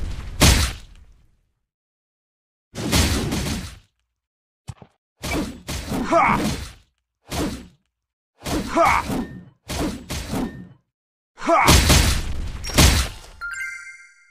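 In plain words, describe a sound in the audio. Sword slashes and magic blasts strike in bursts, with heavy booming impacts.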